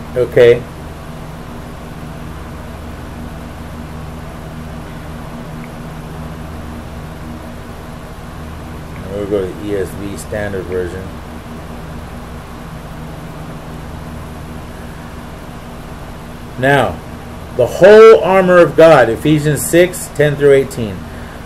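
A middle-aged man speaks close to a phone's microphone in short bursts.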